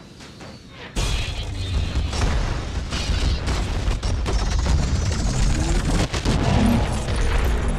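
A deep rumble of a burning warship swells loudly.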